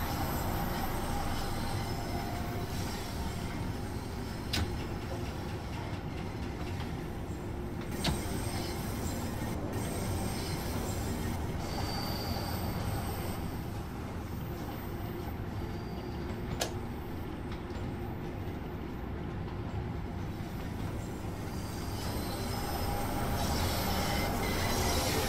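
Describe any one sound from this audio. A train rumbles steadily along a track through a tunnel.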